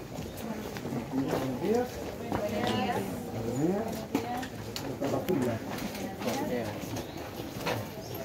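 Several men talk at once nearby.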